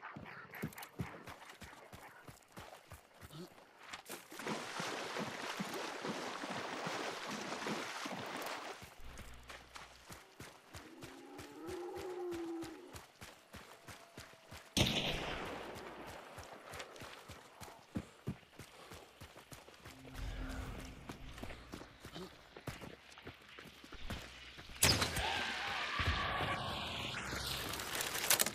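Footsteps tread steadily over dirt and wooden boards.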